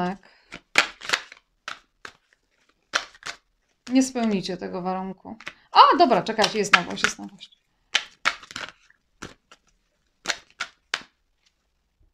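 Playing cards shuffle and riffle in a woman's hands.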